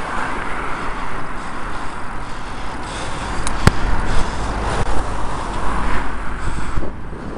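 Tyres roll steadily on a road.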